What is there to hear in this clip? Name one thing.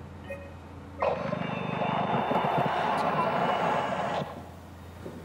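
A computer terminal blares a loud burst of garbled static.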